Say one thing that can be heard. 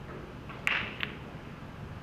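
Snooker balls knock together softly.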